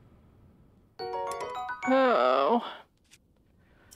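Short electronic chimes sound as a menu opens.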